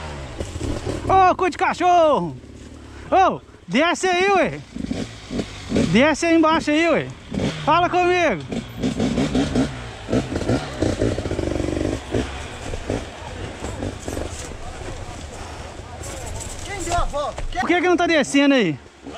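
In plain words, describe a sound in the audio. A dirt bike engine revs up and down in short bursts nearby.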